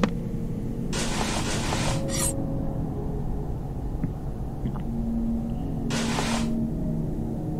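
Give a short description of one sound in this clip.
A short whoosh sweeps past as the view changes.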